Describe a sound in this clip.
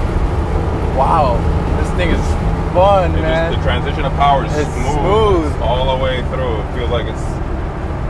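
A man talks with animation inside a car.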